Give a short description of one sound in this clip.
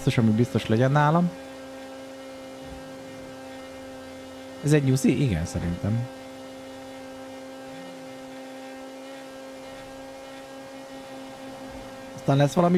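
A car engine hums steadily at high speed.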